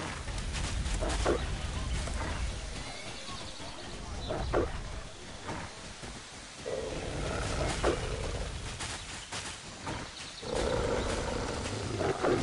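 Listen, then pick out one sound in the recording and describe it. A mount's hooves thud steadily along a dirt path.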